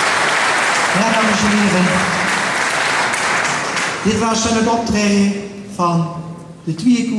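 A man speaks to a crowd in a large echoing hall.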